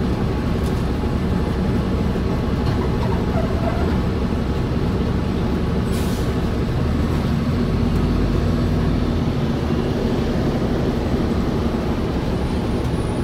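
A vehicle's engine rumbles steadily from inside as it drives along a street.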